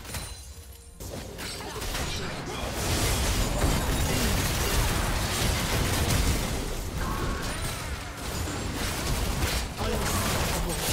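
Spell effects whoosh and crackle in a game fight.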